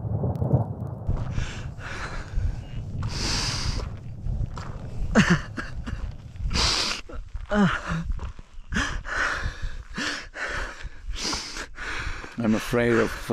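A man pants and groans with strain.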